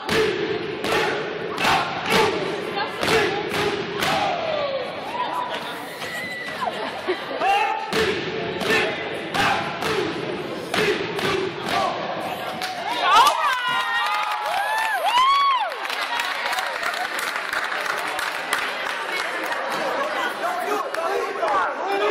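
Young men chant and shout in unison in a large echoing hall.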